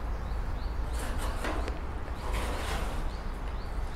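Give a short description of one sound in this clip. A trowel scrapes wet mortar in a bucket.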